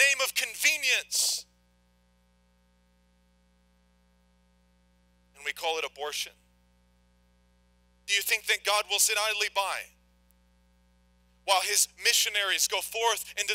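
A young man speaks slowly and earnestly into a microphone, with pauses.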